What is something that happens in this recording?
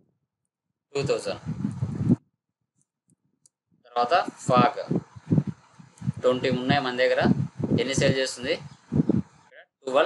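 A young man talks steadily and calmly into a close microphone.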